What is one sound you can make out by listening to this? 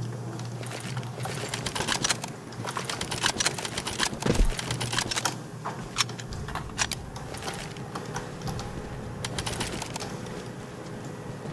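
Footsteps crunch and rustle through grass.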